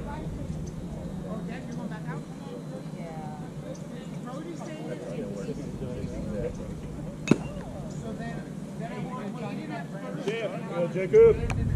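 Young men call out and chatter across an open field.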